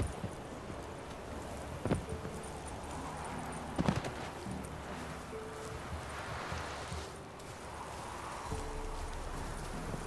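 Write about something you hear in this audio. Footsteps tread slowly along a dirt path.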